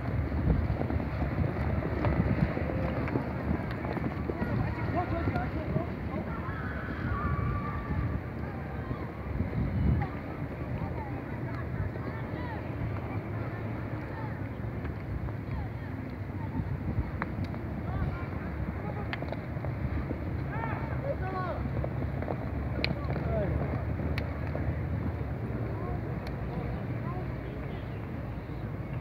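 Horses gallop with drumming hooves on dry ground.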